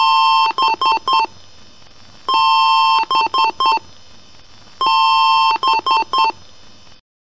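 A computer speaker sounds one long beep followed by three short beeps, three times over.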